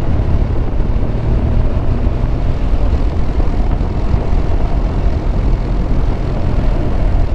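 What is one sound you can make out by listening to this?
Tyres roll over a rough road.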